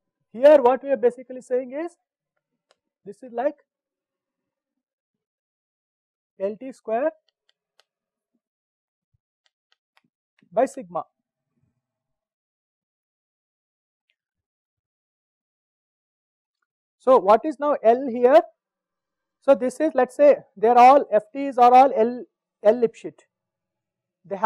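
A man lectures calmly into a close microphone, with pauses.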